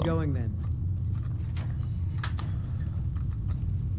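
A metal gate lock clicks open.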